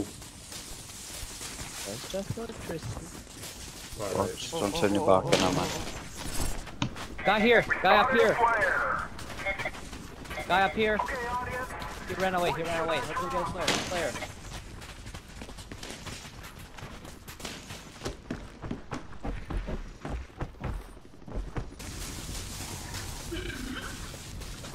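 Footsteps run quickly over grass and ground.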